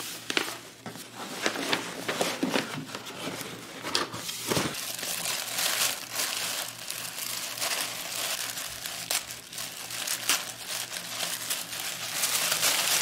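Tissue paper crinkles and rustles close by.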